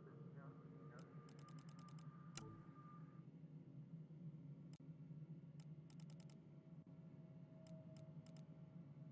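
Soft interface ticks click in quick bursts as a menu scrolls.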